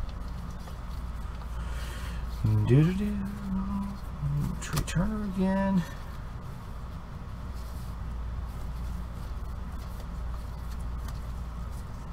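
Trading cards rustle and flick as they are shuffled by hand.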